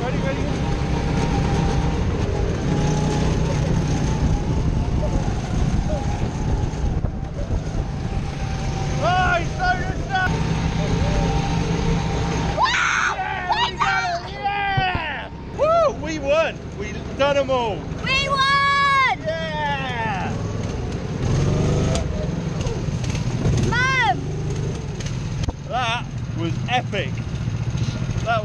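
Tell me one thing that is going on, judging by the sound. A go-kart engine drones steadily at close range.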